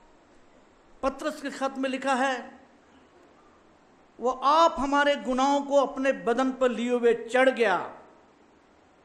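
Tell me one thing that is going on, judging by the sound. An older man reads aloud calmly into a microphone.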